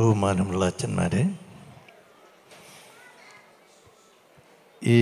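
An elderly man speaks with animation into a microphone over loudspeakers in a large echoing hall.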